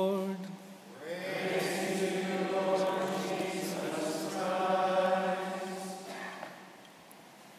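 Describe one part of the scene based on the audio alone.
A large group of men sings a response together.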